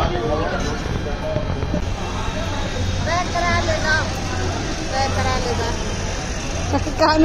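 Adult men and women chat nearby in a lively crowd.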